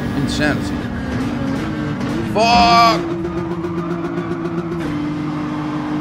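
Racing car engines drone steadily.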